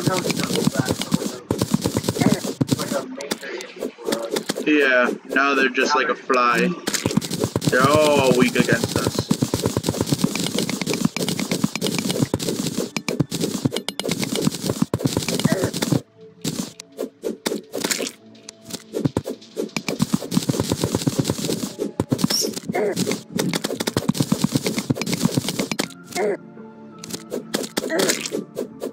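Rapid digging clicks tap away without pause.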